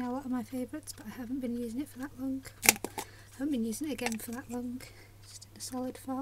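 A plastic jar lid is twisted and pops open.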